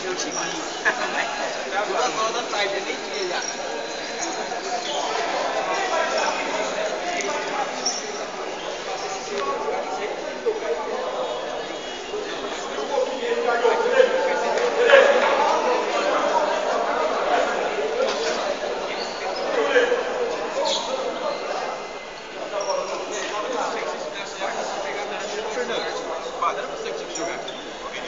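A crowd of spectators chatters and calls out, echoing in a large hall.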